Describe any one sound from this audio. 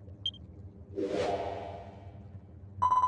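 Large wings whoosh open with a sweep.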